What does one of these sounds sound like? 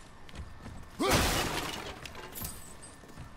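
Something wooden smashes and debris scatters.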